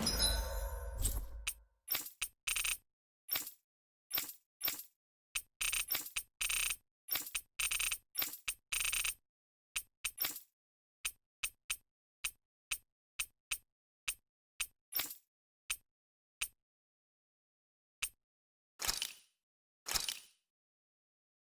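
Short electronic menu blips tick in quick succession, then slow down.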